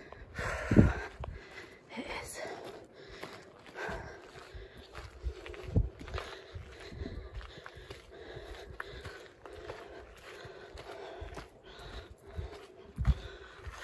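Footsteps crunch on a loose gravel path.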